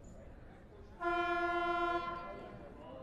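A buzzer blares loudly for about a second.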